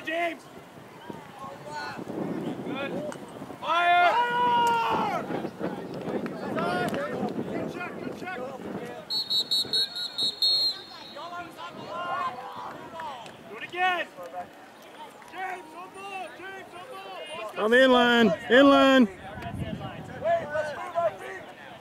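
Spectators and coaches shout and cheer outdoors.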